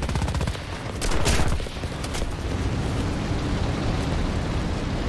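An aircraft explodes.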